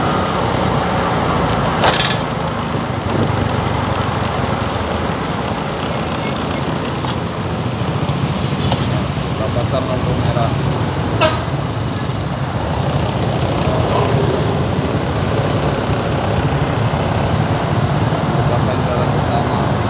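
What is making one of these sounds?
Traffic rumbles around on a busy road.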